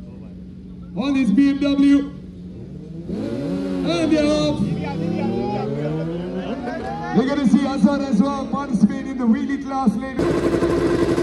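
Motorcycle engines rev loudly in sharp bursts nearby.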